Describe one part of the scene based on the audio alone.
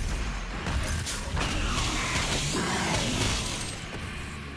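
A monster explodes in a wet, bursting blast.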